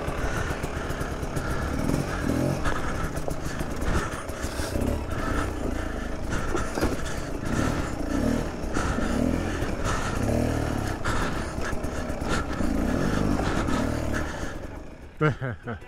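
A motorcycle engine revs and sputters up close as it climbs over rocks.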